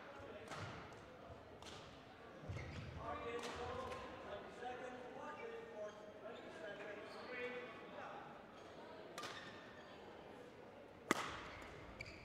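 A racket strikes a shuttlecock with sharp pops in a large echoing hall.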